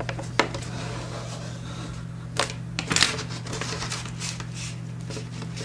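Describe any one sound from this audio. Paper rustles and crinkles as it is folded and moved.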